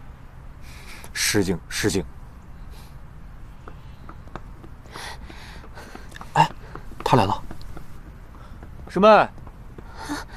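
A second young man answers calmly, close by.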